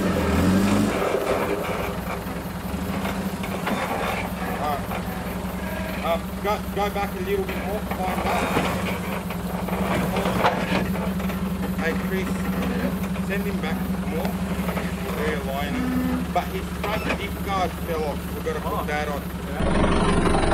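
A four-wheel-drive engine idles with a low, steady rumble.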